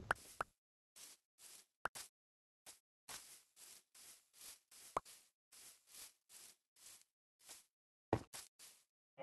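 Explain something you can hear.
Footsteps pad steadily on grass.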